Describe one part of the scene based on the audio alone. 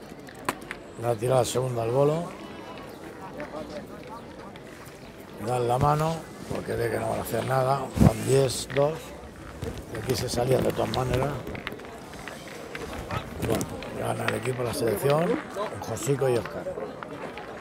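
Several men talk and chat with animation close by, outdoors.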